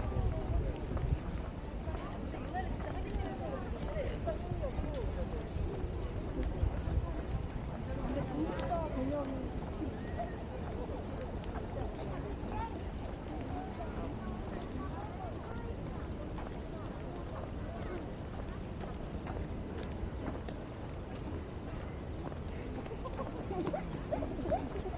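Footsteps tread steadily on paving.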